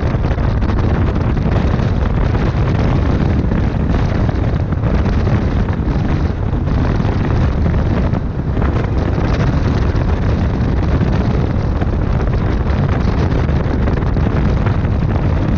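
Wind buffets loudly past an open window.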